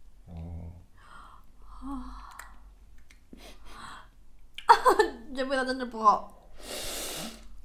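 A man slurps noodles loudly, close by.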